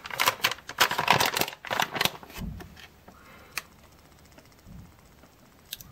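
A plastic pouch crinkles.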